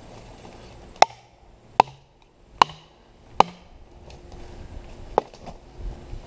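A hatchet chops into wood with sharp knocks.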